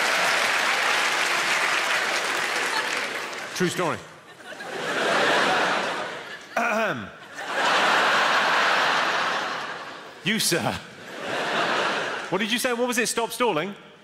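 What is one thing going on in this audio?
A large audience laughs loudly in an echoing hall.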